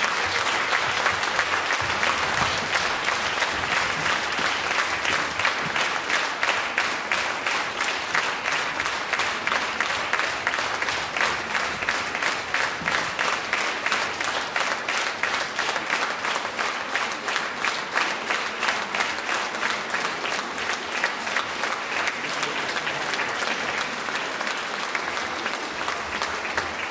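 An audience claps along in a fast, steady rhythm in a large hall.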